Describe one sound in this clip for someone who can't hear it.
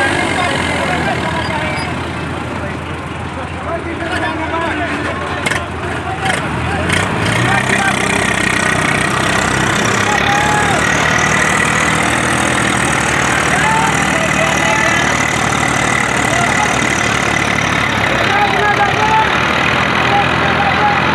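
Tractor engines rumble and roar up close.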